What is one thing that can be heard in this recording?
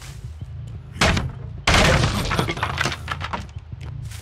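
Wooden boards crack and splinter as they are smashed.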